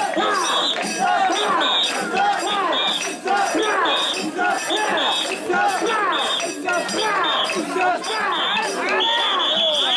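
A man beats wooden clappers in a sharp rhythm.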